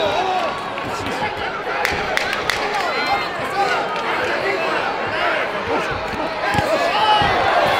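Boxing gloves thud against a body and gloves.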